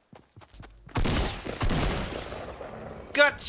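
Gunshots ring out in a quick burst.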